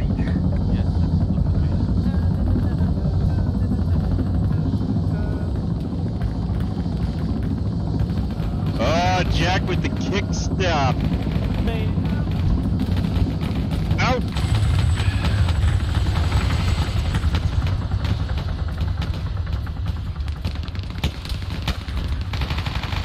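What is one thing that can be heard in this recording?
A helicopter engine and rotor rumble loudly and steadily, then fade.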